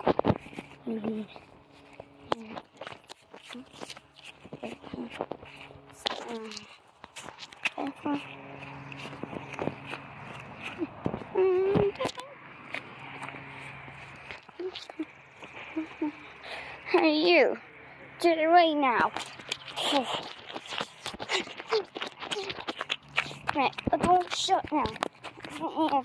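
Sandals slap and scuff on grass and gravel with each step.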